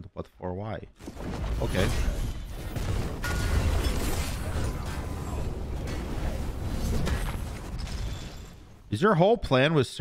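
Magic spells whoosh and crackle in a video game.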